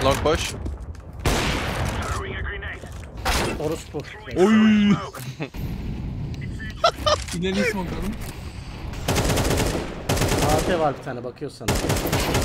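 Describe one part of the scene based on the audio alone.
A young man talks and laughs with animation close to a microphone.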